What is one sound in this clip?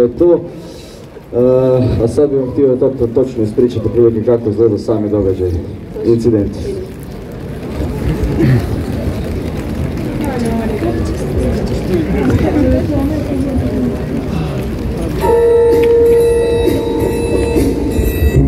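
Rain patters on umbrellas.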